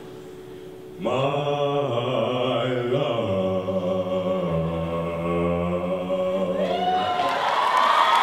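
A young man beatboxes and sings into a microphone in a large hall.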